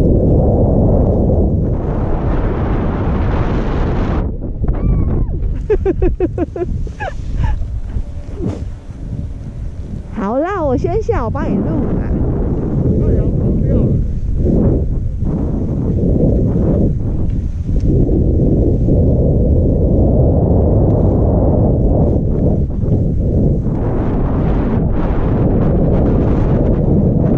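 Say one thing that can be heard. Wind roars loudly past the skier.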